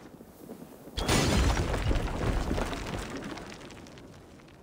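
A fire roars loudly close by.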